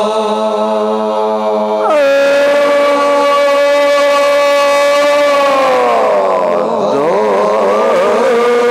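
A man sings a long, held note loudly through a microphone, his voice sliding up and then falling.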